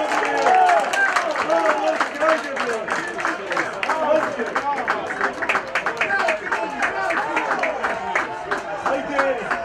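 Young men shout and cheer in celebration outdoors.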